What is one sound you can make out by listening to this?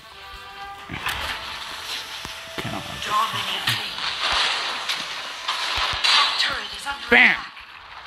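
Sword slashes and spell effects clash and burst in a fast fight.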